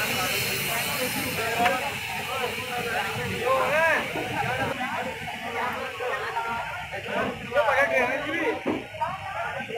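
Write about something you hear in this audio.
A passenger train rolls along the tracks with a low rumble.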